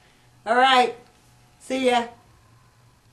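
A woman speaks in a high, cheerful voice close by.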